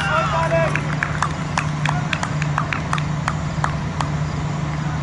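Players clap their hands.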